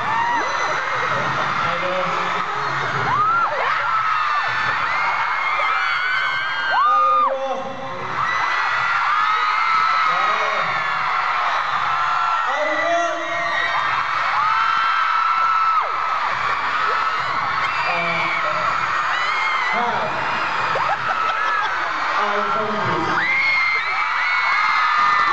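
Young men talk into microphones through loudspeakers.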